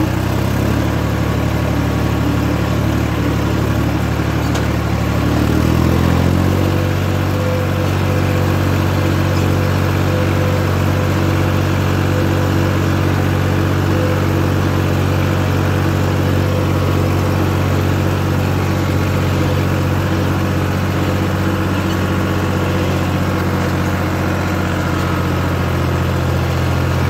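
A tractor engine rumbles steadily up close, its pitch shifting once as it picks up speed.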